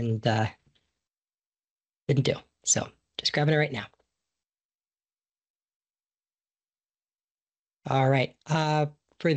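A man speaks calmly over an online call, in short bursts with pauses.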